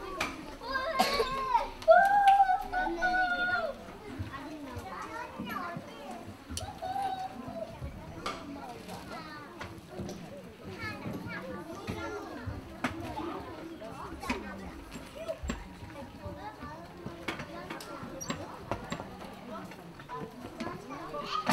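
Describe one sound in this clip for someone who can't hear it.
An audience murmurs and chatters in a large hall.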